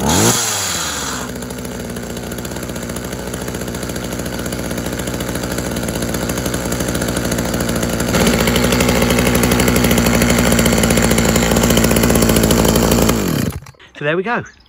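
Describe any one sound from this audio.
A small petrol engine idles loudly, then cuts out.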